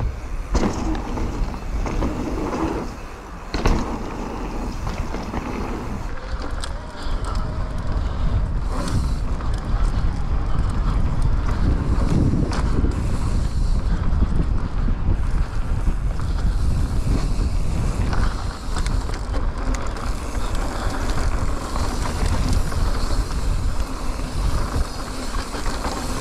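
A bicycle frame rattles over bumps.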